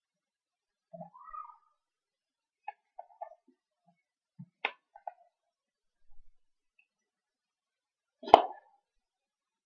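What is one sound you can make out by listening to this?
A man makes short, quiet mouth sounds close to a microphone.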